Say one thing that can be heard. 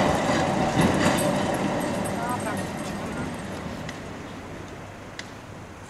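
A tram rumbles slowly along its rails outdoors.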